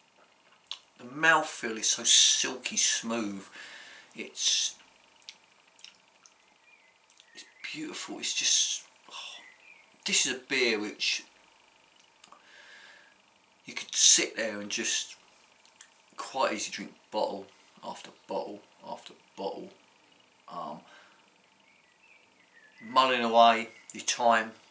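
A middle-aged man talks close to a microphone, calmly, with pauses.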